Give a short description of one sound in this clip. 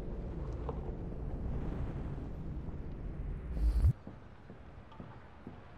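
Footsteps tread slowly across a wooden floor.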